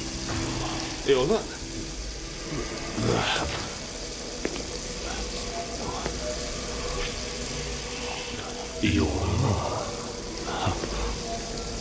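A man speaks close by in a low voice.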